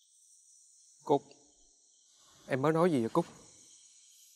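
A young man speaks up sharply and close by.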